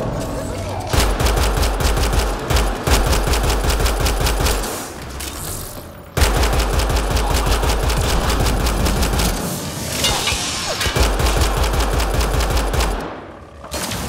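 Rapid gunfire rattles in fast bursts.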